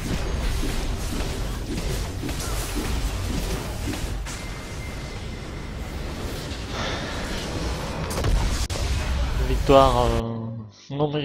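Game battle sounds clash and boom loudly.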